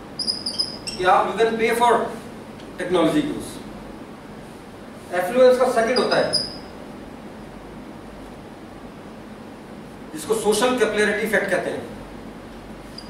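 A middle-aged man speaks calmly in a slightly echoing room.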